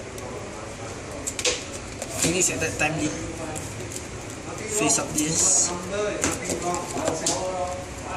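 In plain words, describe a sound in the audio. Playing cards tap and slide onto a soft mat.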